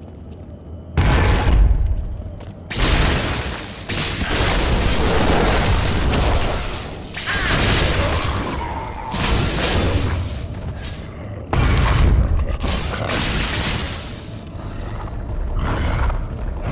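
Spells crackle and blast loudly in a fight.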